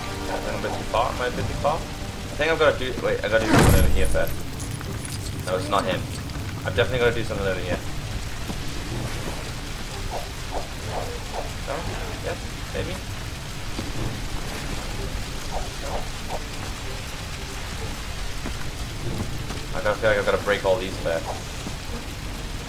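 A young man talks casually into a close microphone, in bursts.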